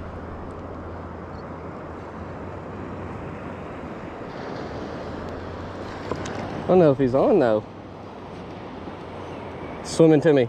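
Small waves lap and splash steadily.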